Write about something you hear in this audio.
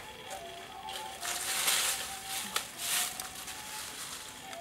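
Dry leaves rustle as hands brush them aside.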